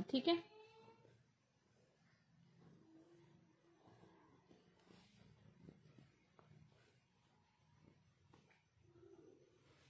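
A hand shuffles and rustles cotton fabric.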